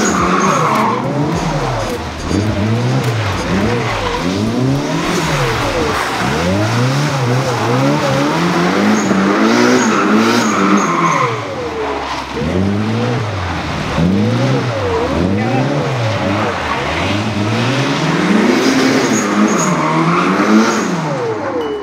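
Tyres squeal on wet pavement as a car drifts.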